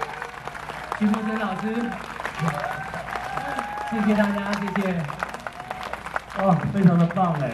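A young man sings through a microphone outdoors.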